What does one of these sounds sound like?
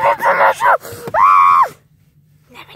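A parrot squawks loudly and close by.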